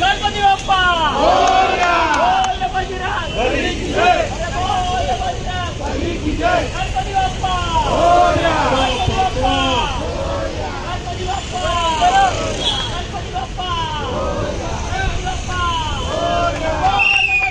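A large crowd of men cheers and chants loudly outdoors.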